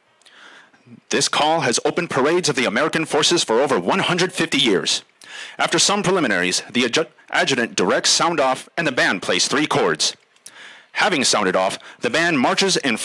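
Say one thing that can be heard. A man speaks loudly and formally through a loudspeaker outdoors.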